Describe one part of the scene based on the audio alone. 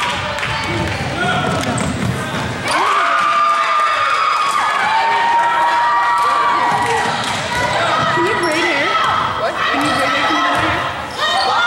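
A crowd of spectators talks and calls out in an echoing gym.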